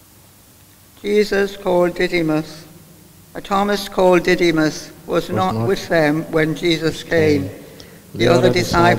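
A man reads aloud calmly through a microphone in a large echoing hall.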